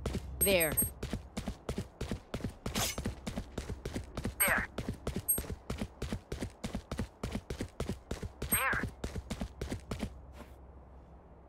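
Footsteps run quickly over a hard stone floor.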